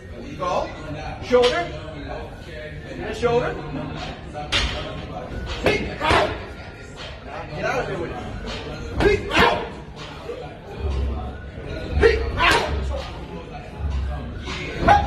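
A man calls out instructions between punches.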